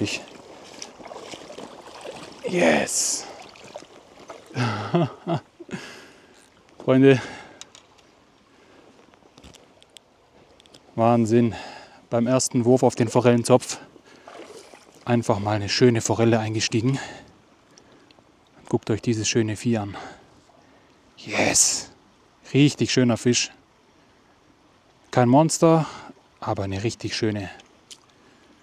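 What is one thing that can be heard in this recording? A stream ripples and splashes over stones.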